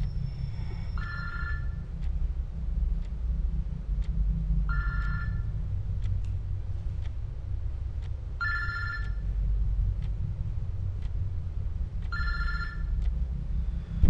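A mobile phone rings with a repeating electronic tone.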